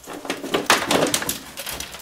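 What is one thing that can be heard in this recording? A plastic panel scrapes and rattles as it is lifted off.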